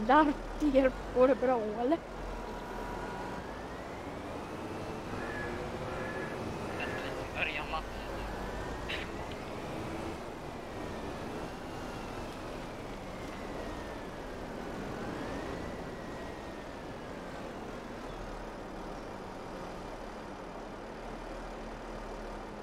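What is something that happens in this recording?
A heavy loader engine rumbles and revs, rising and falling in pitch.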